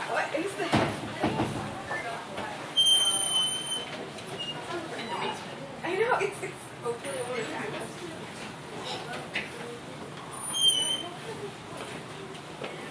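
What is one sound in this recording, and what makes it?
A fabric-covered robot crawls across a hard floor, its cloth rustling.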